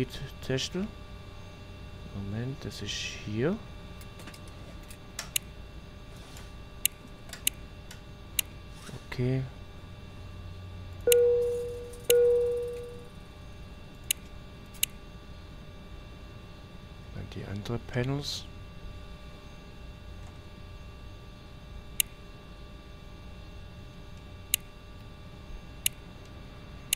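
A steady low hum fills the cabin.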